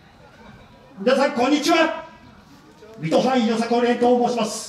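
A group of young people shout a chant together outdoors.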